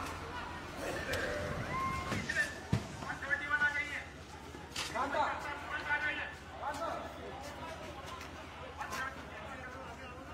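Men shout in the distance.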